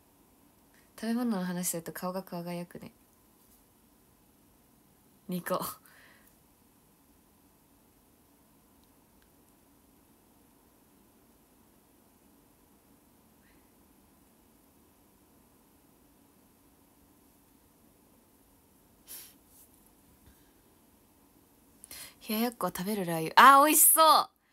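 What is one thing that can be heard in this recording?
A young woman speaks brightly and close to the microphone, in short bursts.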